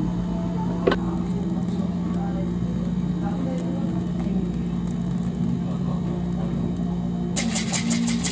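Whipped cream hisses from a can.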